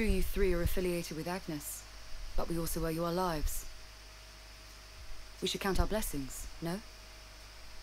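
A young woman speaks calmly and earnestly, close by.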